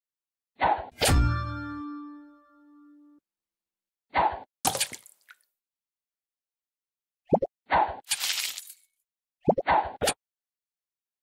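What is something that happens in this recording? Bubbles pop with bright chiming game sounds.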